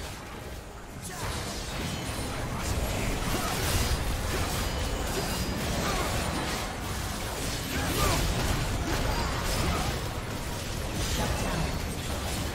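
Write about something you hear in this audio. Magic spells burst and crackle in a chaotic fight.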